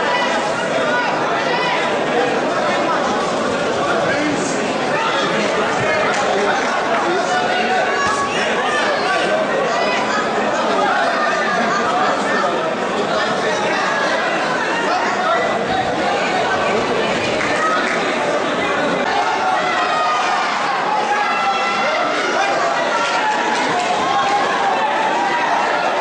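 A crowd chatters and calls out throughout a large echoing hall.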